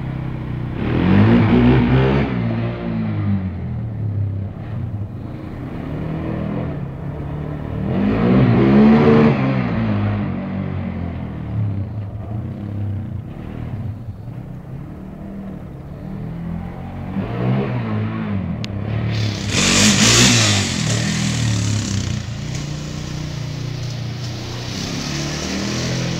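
A quad bike engine revs loudly and rises and falls in pitch as the quad bike passes close by.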